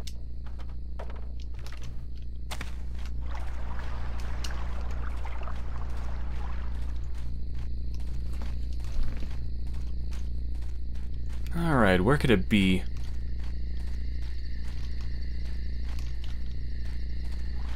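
Footsteps pad steadily over soft ground.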